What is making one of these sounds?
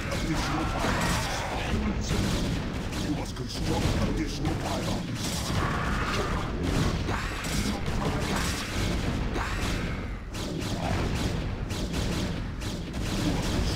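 Laser blasts and explosions from a battle crackle and boom repeatedly.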